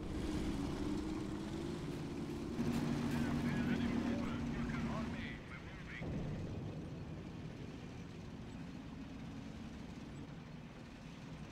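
Tank engines rumble and clank steadily.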